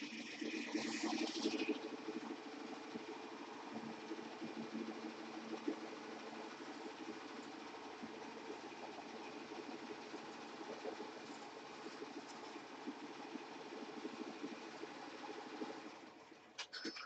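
An embroidery machine stitches with a rapid, steady whirring clatter.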